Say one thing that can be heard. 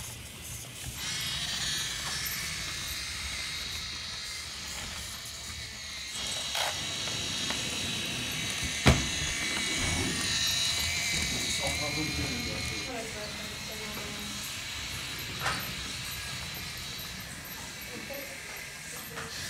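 A small electric motor whines steadily.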